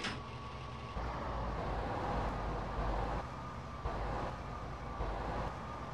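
A car engine rumbles as the car pulls away slowly.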